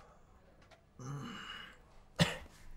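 A young man groans close by.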